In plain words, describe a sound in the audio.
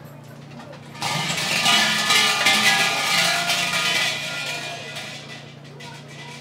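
A bell rattles loudly, then its ringing slowly fades.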